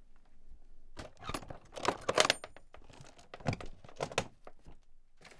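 A wooden lid knocks and rattles as it is lifted and handled.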